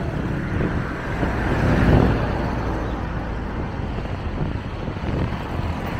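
A van drives past close by with a rising and fading engine rumble.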